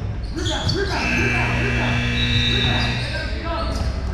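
A referee blows a long whistle.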